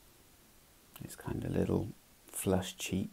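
A middle-aged man speaks calmly into a microphone, close by.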